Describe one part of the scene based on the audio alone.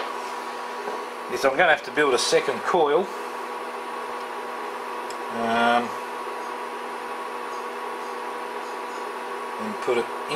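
Water in a pot hisses softly as it heats.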